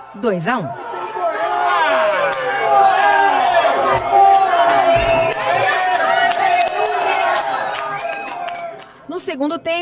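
A crowd of fans cheers and shouts loudly.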